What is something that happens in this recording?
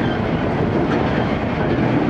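A railway crossing bell rings briefly as a train passes.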